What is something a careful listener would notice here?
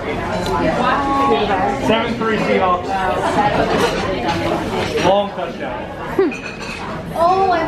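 Several women chatter and talk over one another.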